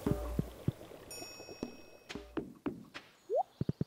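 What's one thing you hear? A door opens and closes.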